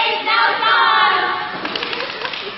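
Young women shout and cheer together, heard close by.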